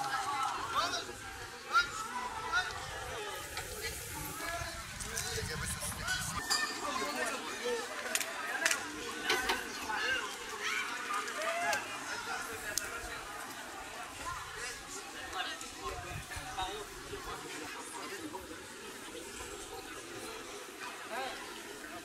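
A crowd of men shouts and chatters outdoors.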